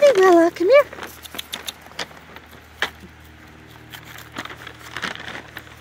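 Paws patter on gravel.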